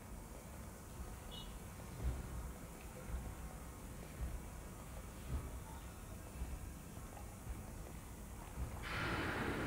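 Footsteps thud slowly and evenly on a hard floor.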